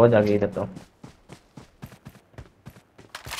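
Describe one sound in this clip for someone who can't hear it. Footsteps run quickly over ground.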